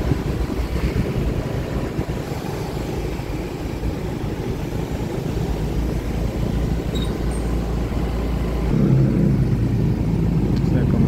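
A motorbike engine hums steadily close by.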